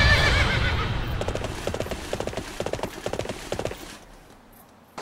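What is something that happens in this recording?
Hooves gallop rapidly.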